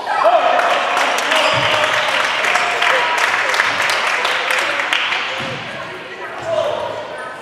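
Table tennis balls click and bounce on tables in a large echoing hall.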